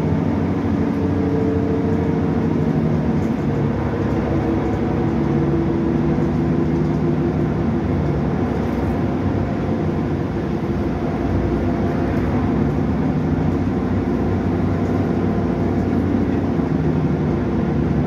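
A bus body rattles and vibrates on the road.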